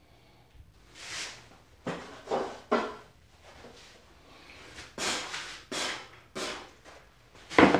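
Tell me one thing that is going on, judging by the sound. Objects clatter and thump as a man rummages nearby.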